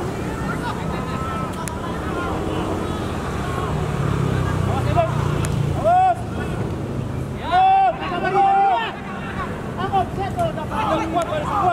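A crowd murmurs steadily in the distance.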